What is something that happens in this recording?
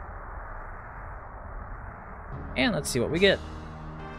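A magical blast bursts with a rushing whoosh.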